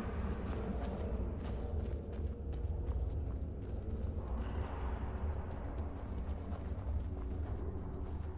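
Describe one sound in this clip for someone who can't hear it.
Footsteps scrape over stone in a cave.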